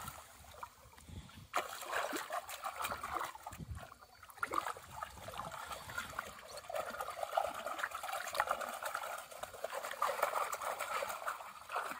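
Water sloshes gently around legs wading slowly.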